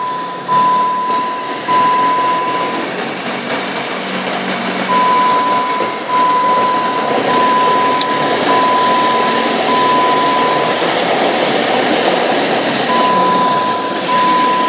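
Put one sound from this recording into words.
A vehicle engine rumbles steadily while driving slowly through a large echoing enclosed space.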